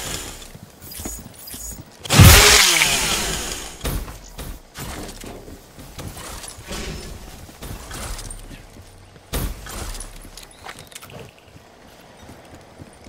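Video game gunfire cracks in short bursts.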